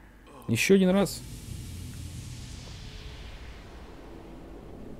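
A soft shimmering whoosh rises and slowly fades.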